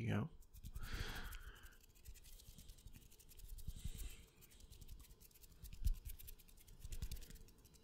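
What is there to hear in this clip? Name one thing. Fingers rub and flutter close to a microphone.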